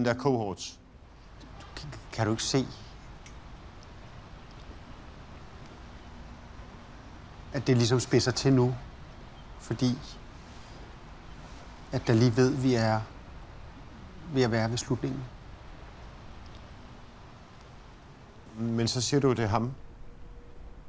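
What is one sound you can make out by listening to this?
A man speaks quietly and close by, in short phrases with long pauses.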